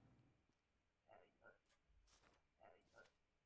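A young man speaks quietly into a close microphone.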